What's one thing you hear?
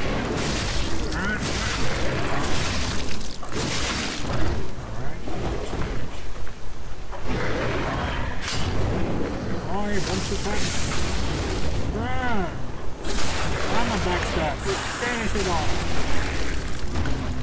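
Blades slash and clash in quick strikes.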